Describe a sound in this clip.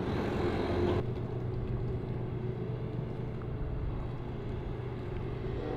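A diesel excavator engine runs.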